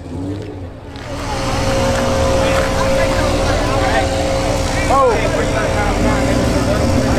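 A car engine idles with a deep rumble nearby.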